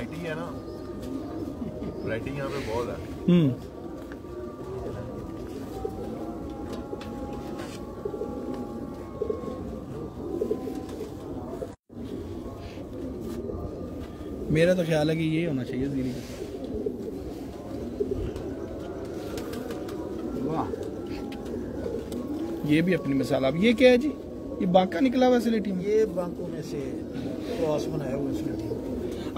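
An elderly man speaks nearby.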